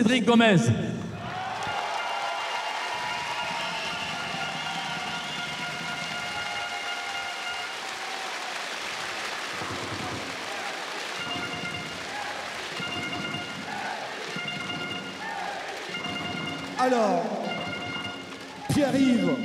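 A crowd applauds and cheers steadily.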